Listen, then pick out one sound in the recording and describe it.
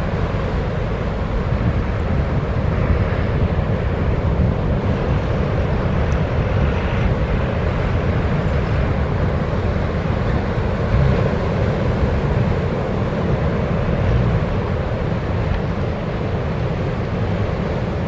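A boat's outboard engines rumble steadily.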